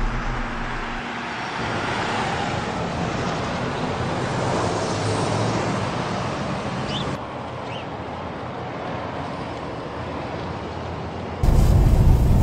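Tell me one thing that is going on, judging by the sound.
Traffic rumbles past on a street.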